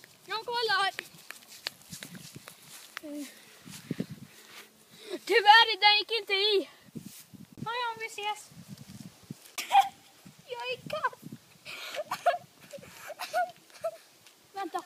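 A young boy shouts excitedly close by.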